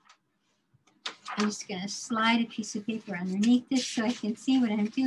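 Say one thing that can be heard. A woman speaks with animation through an online call.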